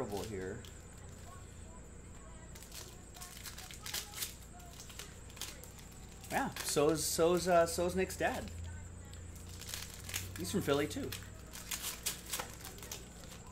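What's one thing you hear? Cards and plastic wrappers rustle and crinkle as hands sort them.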